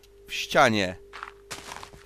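A fist punches a wooden block with soft knocks.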